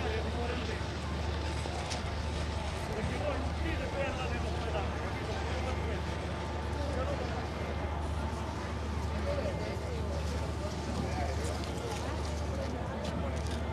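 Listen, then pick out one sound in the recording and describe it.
Men and women talk and murmur nearby, outdoors.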